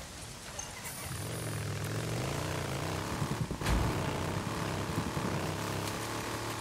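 A motorcycle engine starts and runs with a low rumble.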